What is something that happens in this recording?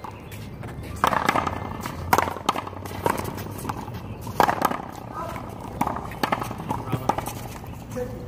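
A ball smacks sharply against a wall and paddles.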